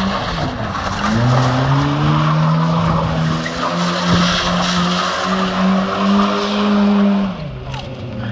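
A car engine revs hard and roars close by.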